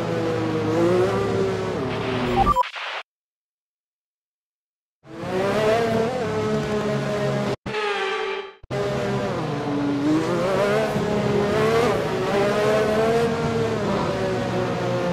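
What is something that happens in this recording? A racing car engine whines steadily at high revs.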